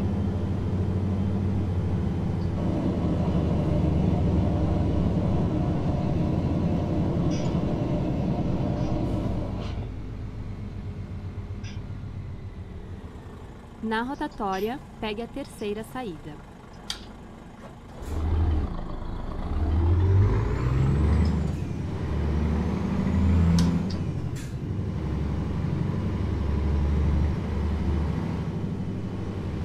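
A truck engine hums and rumbles steadily.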